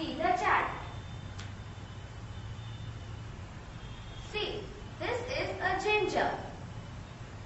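A young girl speaks nearby in short bursts, explaining.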